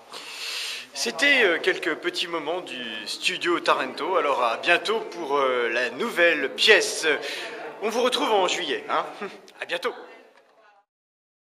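A man talks close to the microphone with animation.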